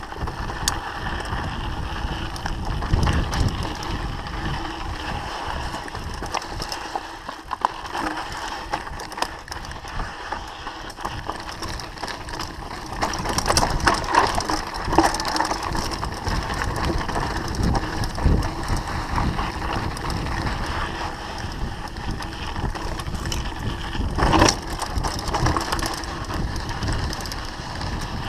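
Bicycle tyres crunch and rumble over a rough dirt trail.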